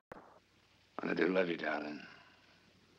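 A man speaks softly up close.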